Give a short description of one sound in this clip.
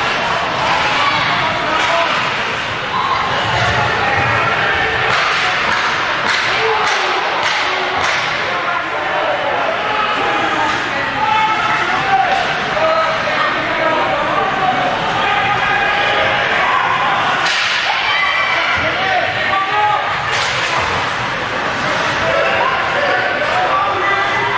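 A crowd of spectators cheers and shouts in an echoing rink.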